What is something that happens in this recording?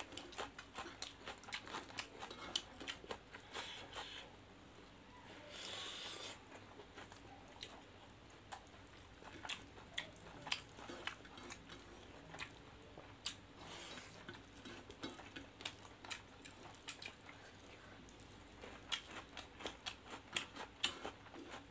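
Fingers scrape and squish rice against a metal plate.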